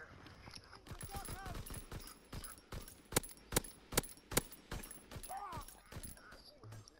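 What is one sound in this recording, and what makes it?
A rifle fires repeated sharp shots.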